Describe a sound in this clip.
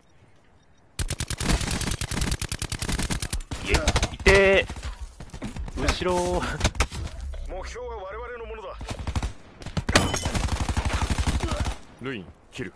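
A rifle fires in rapid bursts at close range.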